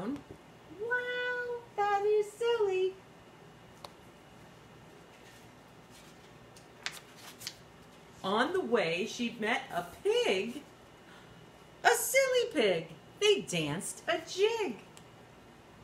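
A middle-aged woman reads a story aloud expressively, close by.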